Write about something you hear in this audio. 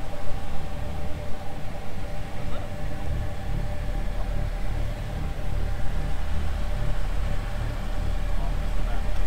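An off-road vehicle's engine rumbles as it climbs a steep rock slope.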